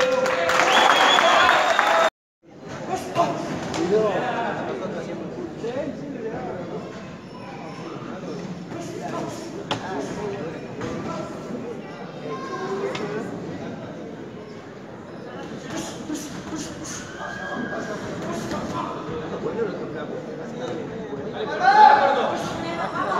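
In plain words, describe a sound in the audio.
A crowd chatters and shouts in a large echoing hall.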